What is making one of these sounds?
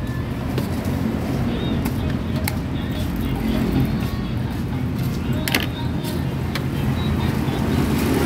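A metal spoon scrapes shaved ice in a metal pan.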